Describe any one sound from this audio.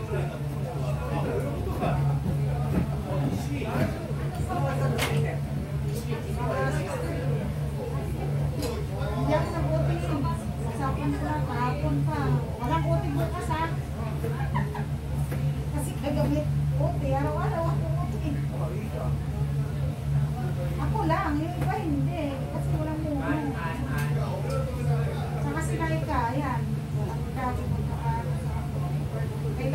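A woman talks in a relaxed way nearby.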